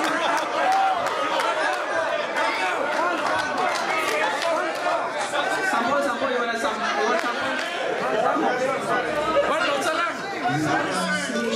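A crowd of men laughs loudly.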